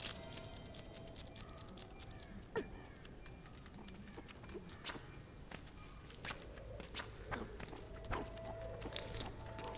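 Small footsteps patter lightly across the ground.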